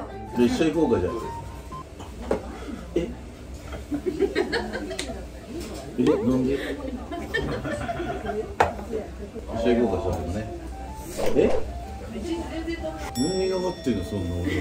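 Young men and women talk and laugh close by.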